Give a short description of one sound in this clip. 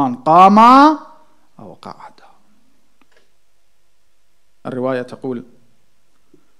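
A man speaks slowly into a microphone, with long pauses, through a loudspeaker.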